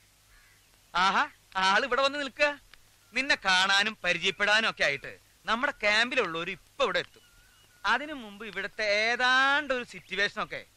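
A middle-aged man talks loudly and with animation nearby.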